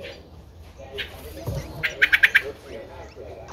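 Nestling birds cheep in quick, shrill bursts close by.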